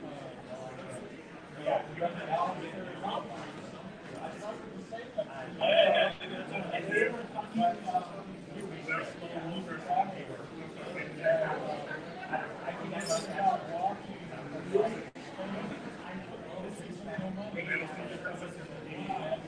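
Several men talk over one another from a distance, in a room with some echo.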